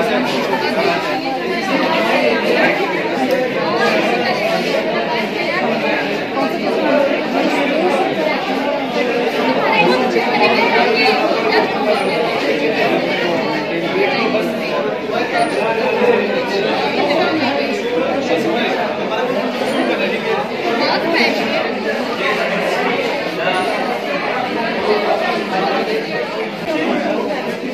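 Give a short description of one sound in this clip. Many young people chatter at once in a busy room.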